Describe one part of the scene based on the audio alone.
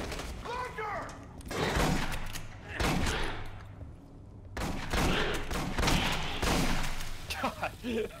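Gunshots blast in rapid bursts.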